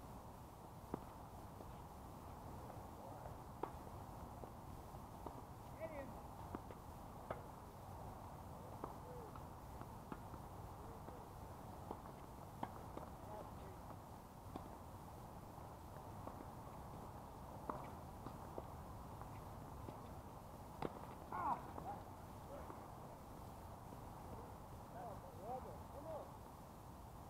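Tennis balls are struck with rackets outdoors, each hit a sharp pop.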